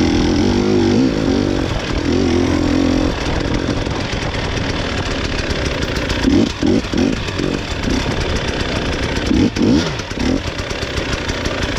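A small engine drones and revs unevenly up close.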